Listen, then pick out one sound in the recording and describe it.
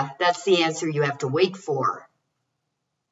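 An older woman speaks calmly into a microphone.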